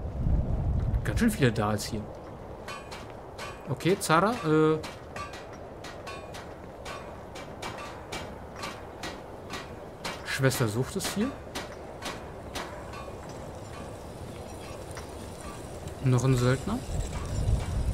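A man talks into a microphone in short bursts.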